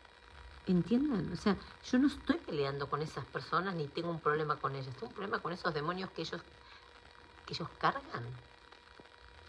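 A woman talks with animation, close to the microphone.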